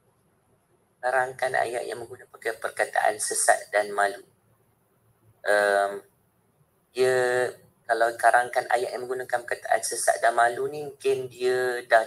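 A man speaks through an online call.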